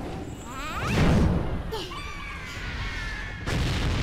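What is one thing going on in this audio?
Fire whooshes and crackles in a burst of flame.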